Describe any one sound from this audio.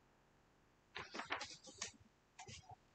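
A book page turns with a papery rustle.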